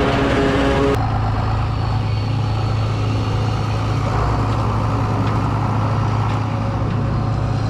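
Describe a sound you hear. A tractor engine rumbles steadily at idle.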